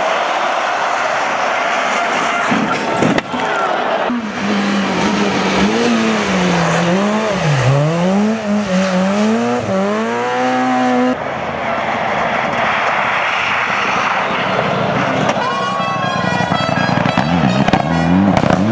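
A rally car engine revs hard and changes pitch through gear shifts.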